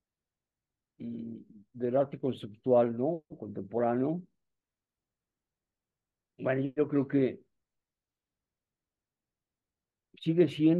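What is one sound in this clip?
An elderly man speaks calmly through a microphone on an online call.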